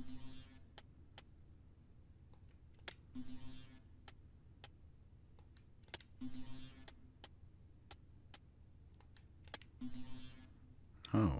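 Short electronic clicks and blips sound as menu items are chosen.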